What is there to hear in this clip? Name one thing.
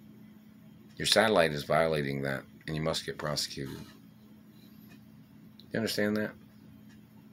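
An older man speaks calmly and close to the microphone, in short bursts.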